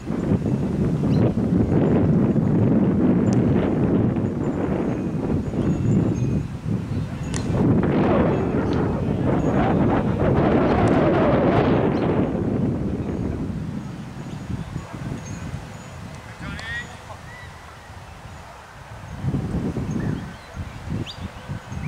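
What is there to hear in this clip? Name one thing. Wind gusts across an open field, rumbling strongly and then easing.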